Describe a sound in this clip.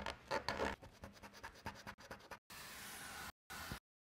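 A marker squeaks across a stencil.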